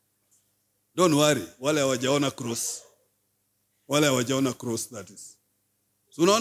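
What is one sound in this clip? A man speaks slowly and firmly into a microphone, in short phrases with pauses.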